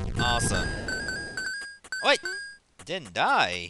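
Bright electronic chimes ring in quick bursts.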